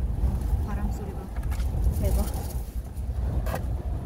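A wooden board scrapes as it is lifted.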